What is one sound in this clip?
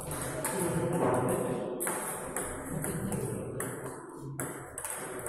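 A table tennis ball clicks sharply against paddles and the table in a quick rally.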